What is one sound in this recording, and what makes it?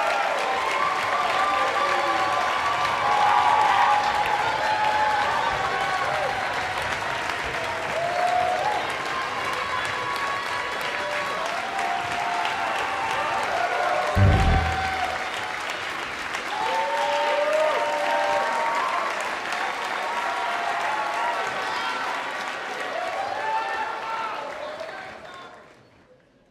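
A big band plays lively brass-heavy music in a large hall.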